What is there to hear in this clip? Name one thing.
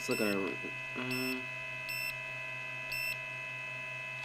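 A multimeter beeps several times in short, high tones.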